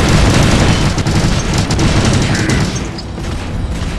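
Explosions blast and crackle.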